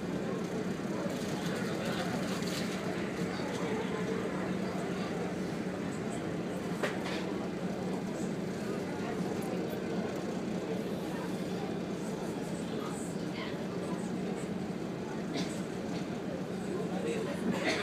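A ship's engine drones low and steady.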